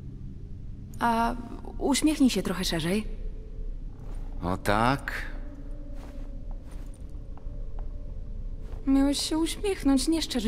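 A young woman speaks playfully.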